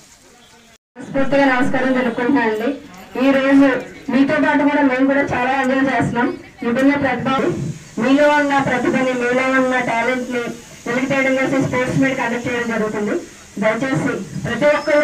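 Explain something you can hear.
A young woman speaks loudly into a microphone through a loudspeaker.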